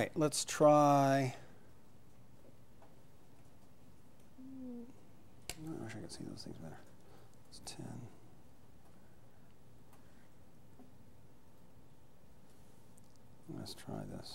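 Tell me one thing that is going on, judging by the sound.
A man types and clicks on a laptop.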